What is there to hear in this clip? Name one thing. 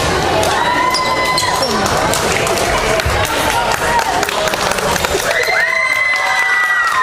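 A crowd cheers and whistles in an echoing sports hall.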